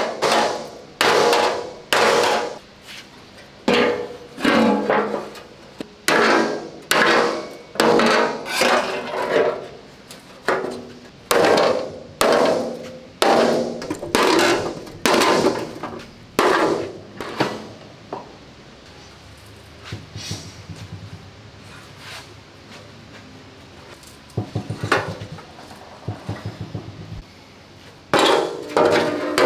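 A heavy metal panel bangs and clangs loudly on a steel bench, ringing after each blow.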